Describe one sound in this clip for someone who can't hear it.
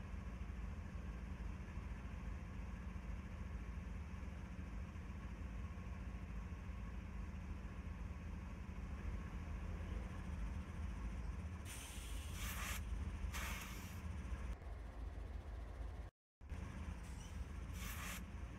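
A diesel locomotive engine idles with a low, steady rumble.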